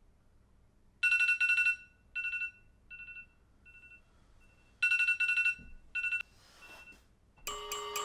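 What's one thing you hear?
A phone alarm beeps in short repeated bursts close by.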